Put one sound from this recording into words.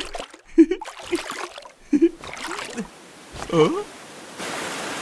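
A cartoon man talks cheerfully close by.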